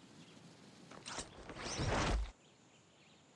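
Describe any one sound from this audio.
Leafy branches crash and rustle as something drops through a tree.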